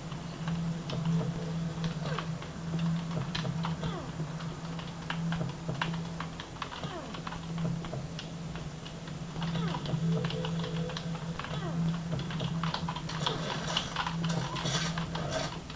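Keys clatter on a computer keyboard.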